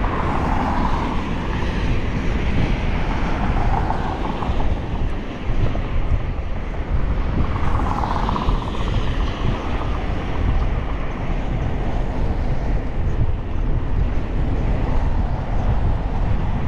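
Wind buffets and rumbles loudly, outdoors.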